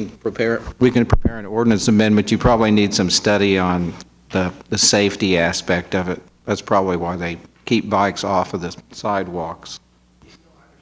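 An older man speaks calmly into a close microphone.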